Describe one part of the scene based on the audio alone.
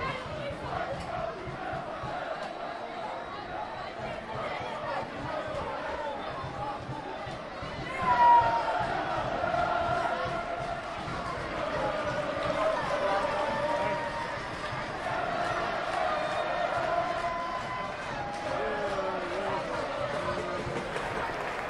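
Children shout and call out to each other across a large echoing hall.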